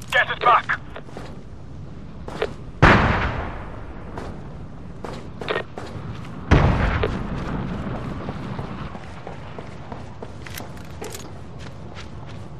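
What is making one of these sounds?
Boots clank on metal grating as a soldier walks.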